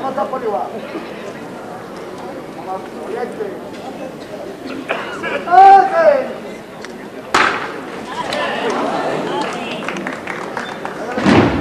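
A crowd of people murmurs and talks nearby, outdoors.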